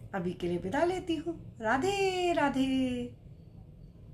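A woman speaks warmly and expressively close to a microphone.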